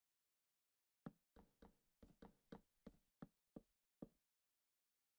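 Blocks are placed with a quick run of soft clicks.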